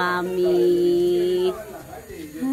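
A small child talks in a high voice.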